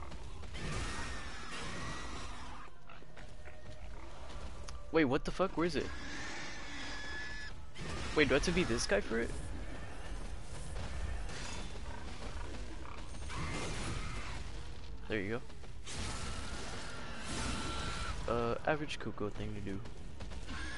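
A large beast growls and snarls.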